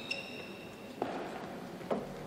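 A racket strikes a shuttlecock with a sharp pop.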